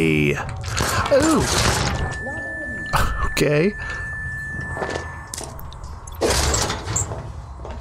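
Something bursts with a loud blast in a game.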